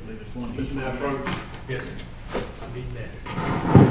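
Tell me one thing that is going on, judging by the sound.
Paper rustles as a man handles a sheet.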